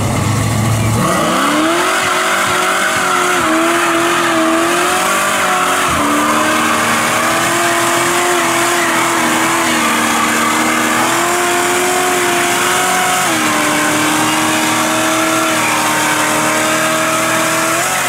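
A car engine revs hard and roars at high pitch.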